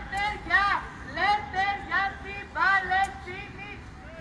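A crowd of men and women chants slogans loudly outdoors.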